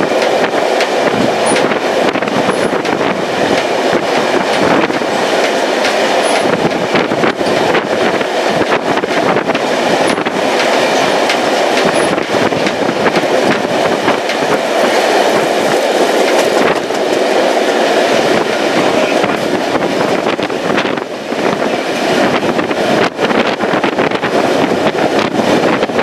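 Train wheels rumble and clatter steadily on the rails.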